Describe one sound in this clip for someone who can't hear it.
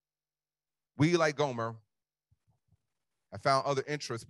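A man preaches forcefully into a microphone, in short bursts with pauses.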